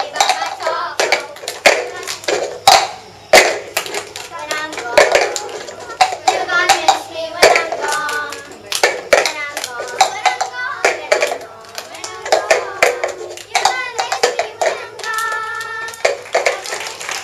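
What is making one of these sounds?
Plastic cups tap and clack in a quick rhythm on a hard floor.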